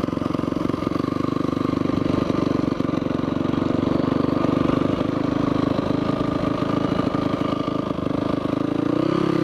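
A motorcycle engine drones steadily up close and revs up near the end.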